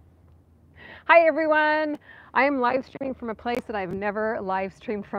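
A woman speaks cheerfully and with animation close to the microphone.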